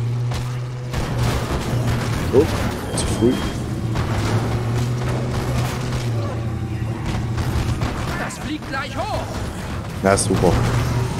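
Bodies thud against a vehicle's front.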